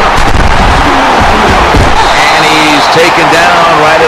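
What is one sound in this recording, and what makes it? Football players collide with heavy thuds.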